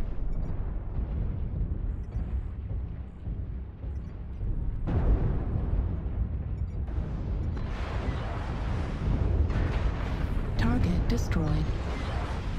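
A heavy walking machine rumbles deeply and steadily.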